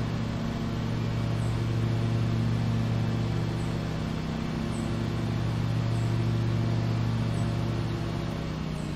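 A lawn mower engine hums steadily.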